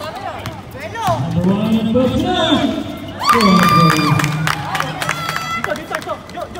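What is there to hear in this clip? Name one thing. Men shout and call out to each other during play.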